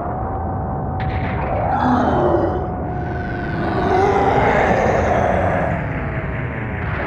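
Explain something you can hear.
A creature growls and roars in pain.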